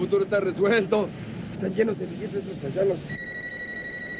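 A young man talks animatedly on a phone.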